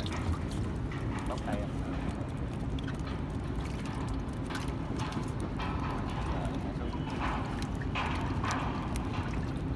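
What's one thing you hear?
Water laps against the side of a small boat.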